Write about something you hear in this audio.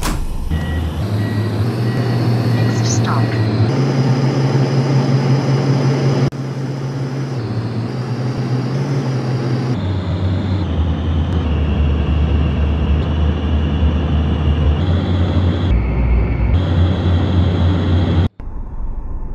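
A bus engine drones low, its pitch rising and falling in steps as it drives.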